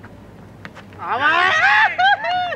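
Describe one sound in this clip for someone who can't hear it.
Men shout loudly outdoors.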